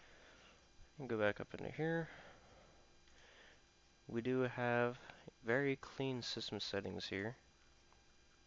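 A man speaks calmly into a nearby microphone, in short phrases.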